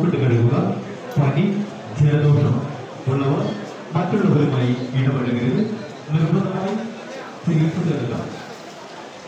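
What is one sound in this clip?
A man speaks steadily and clearly, close to a microphone.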